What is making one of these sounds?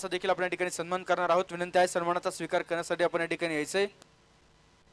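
A man speaks with animation over a loudspeaker.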